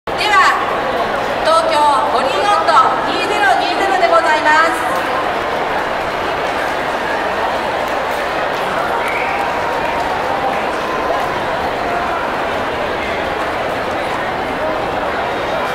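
A large crowd of men and women chatters in a big echoing hall.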